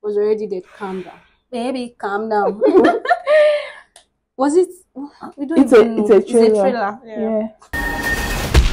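A young woman laughs and chats, close by.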